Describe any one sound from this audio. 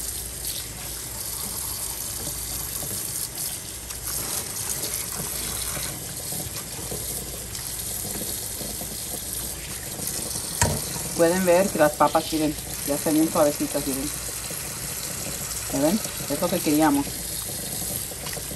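Wet potato chunks clatter and squelch as hands rinse them.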